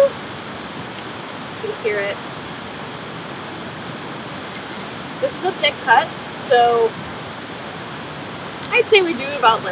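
Meat sizzles softly on a hot grill.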